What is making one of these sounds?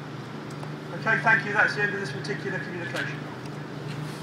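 A middle-aged man speaks loudly through a megaphone.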